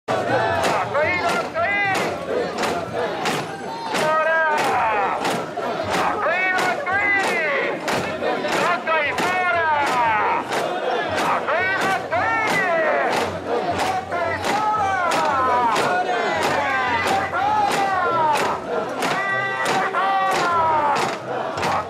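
A large crowd of men chants loudly and rhythmically close by.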